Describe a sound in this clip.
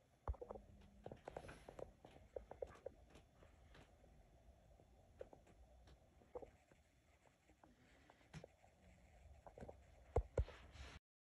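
A woman speaks quietly close by.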